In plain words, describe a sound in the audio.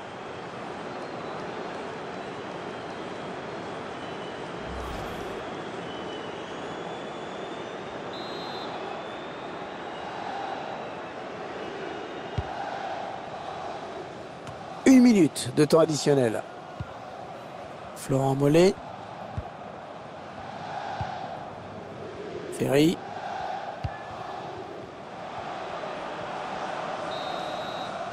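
A large stadium crowd roars steadily in the distance.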